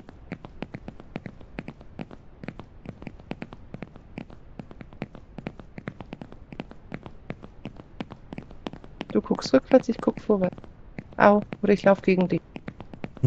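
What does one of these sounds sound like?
Footsteps run quickly and steadily over grass and gravel.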